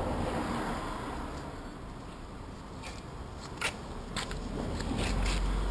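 Footsteps walk past close by.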